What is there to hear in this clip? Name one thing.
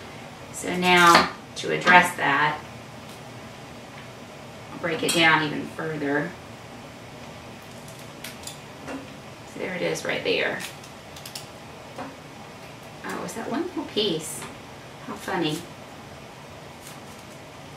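A knife chops cauliflower on a cutting board.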